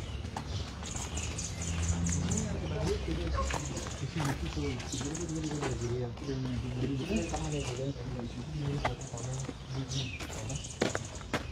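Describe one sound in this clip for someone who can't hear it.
A man speaks close by, in a calm voice.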